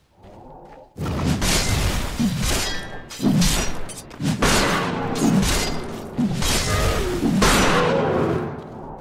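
Weapons strike with sharp hits.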